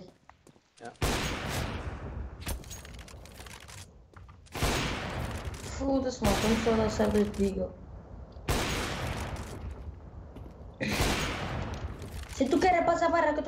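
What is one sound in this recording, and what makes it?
Loud rifle shots go off one at a time, each followed by a long rumbling echo.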